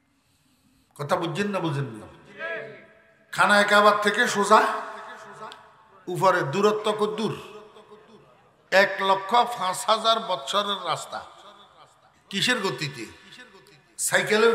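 An elderly man preaches forcefully into a microphone over a loudspeaker, his voice rising to a chanting shout.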